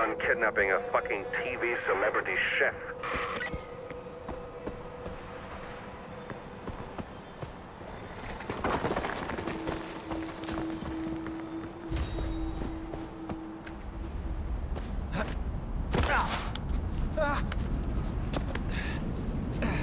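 Footsteps crunch over grass and stones.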